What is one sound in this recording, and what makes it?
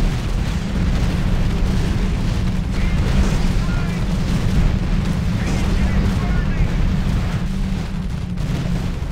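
Gunfire and explosions rattle and boom continuously in a battle.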